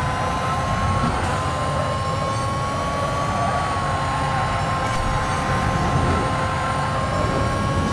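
A race car engine roars at high speed, whining steadily.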